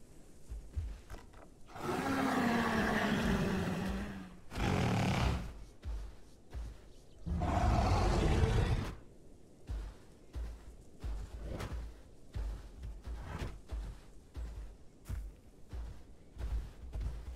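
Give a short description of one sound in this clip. Heavy footsteps thud steadily on dirt.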